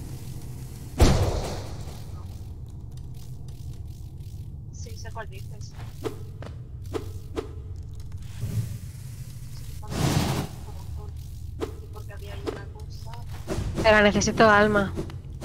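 Magical energy bursts with a loud whoosh.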